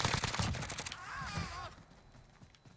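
A young man exclaims excitedly into a microphone.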